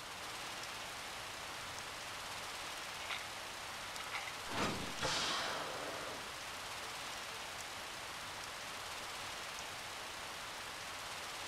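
Water sprays steadily from a fire hose.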